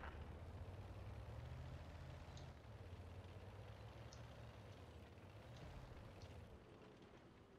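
A tank engine rumbles low and steadily, then fades away.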